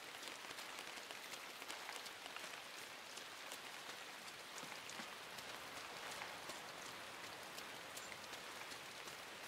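Tall corn leaves rustle in a light wind.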